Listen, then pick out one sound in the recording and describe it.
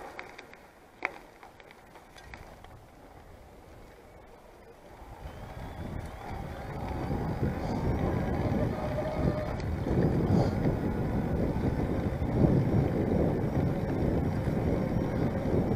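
Bicycle tyres roll over a dirt path.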